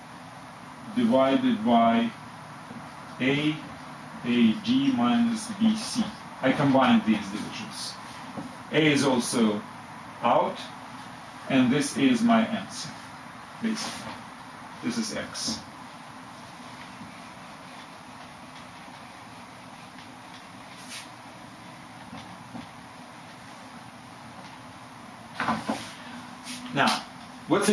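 A middle-aged man speaks calmly and explains, close by.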